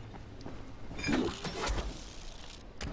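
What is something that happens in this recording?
Leaves rustle as branches are pushed aside.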